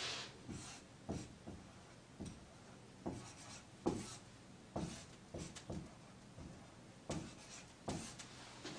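A marker squeaks and taps against a whiteboard.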